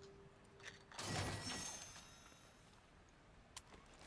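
A safe door clicks open.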